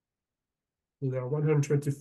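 A man speaks through a microphone on an online call.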